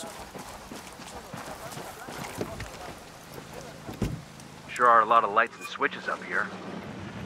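Footsteps tread through grass and dirt.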